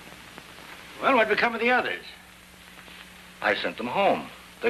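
A man speaks sharply and with urgency.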